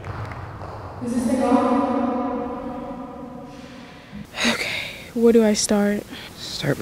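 A young woman speaks slowly into a microphone.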